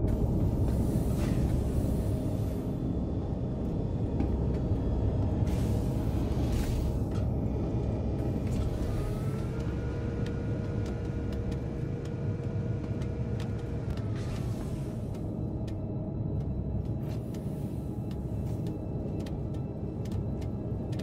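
A low mechanical hum drones steadily throughout.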